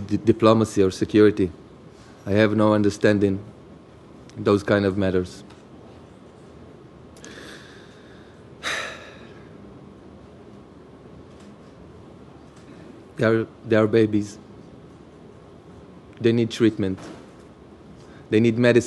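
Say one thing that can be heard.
A young man speaks into a microphone in slow, halting phrases, with pauses between them.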